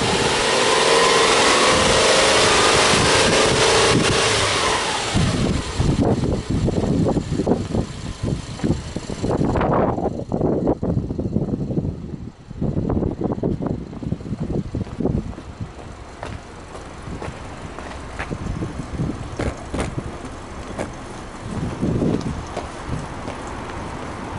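A car engine runs with a steady, low rumble.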